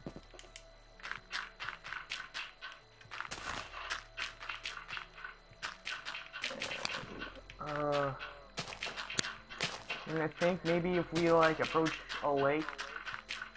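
Earth and stone crunch as blocks are dug out.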